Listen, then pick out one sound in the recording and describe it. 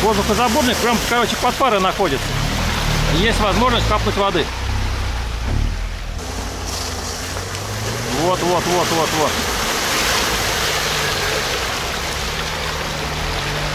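Tyres churn and splash through wet mud.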